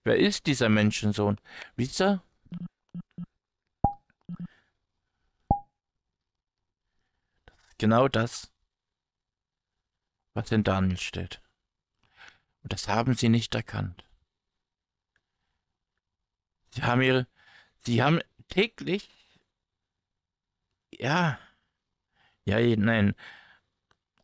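A man speaks calmly and in short phrases, close to a microphone.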